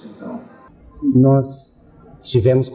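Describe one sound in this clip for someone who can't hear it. Another middle-aged man speaks calmly into a close microphone.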